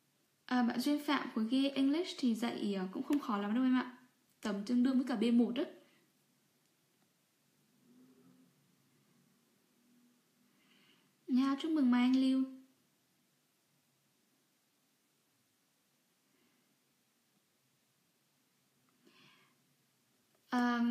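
A young woman speaks calmly and close to a microphone, in short bursts with pauses.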